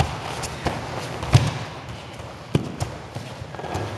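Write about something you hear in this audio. Bodies thud onto a padded mat.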